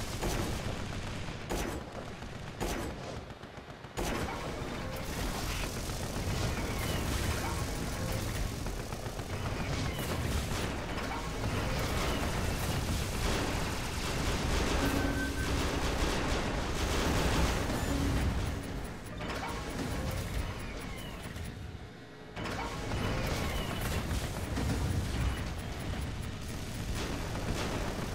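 Game gunfire and laser shots crackle steadily.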